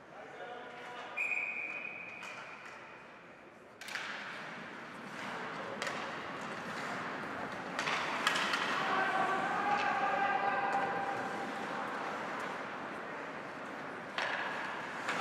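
Skates scrape and hiss across the ice.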